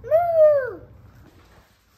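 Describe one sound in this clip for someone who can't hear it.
A young boy calls out a single word close by.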